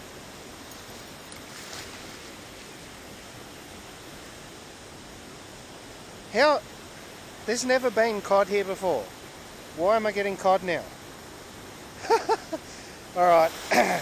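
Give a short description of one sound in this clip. A fish splashes weakly at the surface of the water.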